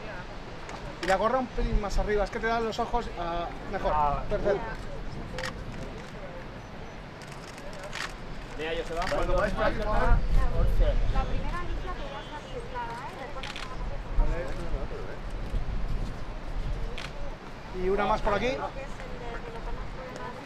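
Young men talk nearby in short bursts.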